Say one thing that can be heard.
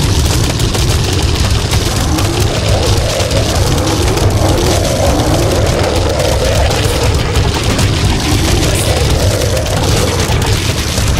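Rapid cartoonish puffs and pops sound without pause.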